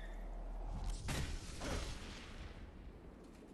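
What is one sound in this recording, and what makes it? A loud magical blast bursts and roars.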